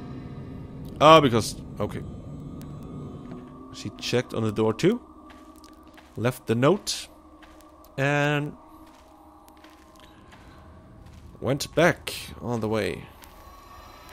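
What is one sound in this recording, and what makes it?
A man talks through a microphone close by, in bursts with pauses.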